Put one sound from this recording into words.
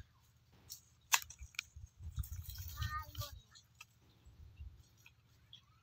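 A hoe chops into dry soil with dull thuds.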